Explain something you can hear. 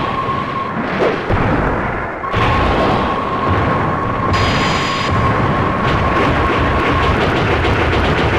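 Game monsters trade blows with heavy impact thuds.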